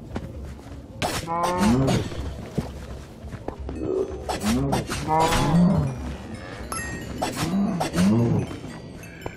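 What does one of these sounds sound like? Blows land with sharp hits during a fight.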